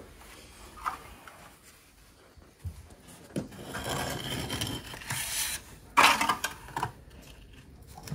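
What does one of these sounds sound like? A trowel scrapes and smooths wet screed on a floor.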